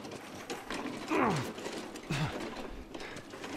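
A creature shrieks and growls behind a metal gate.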